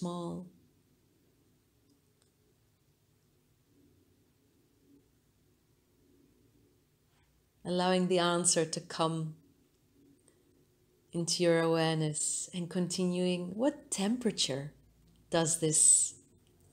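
A woman speaks calmly and softly, close by, with long pauses.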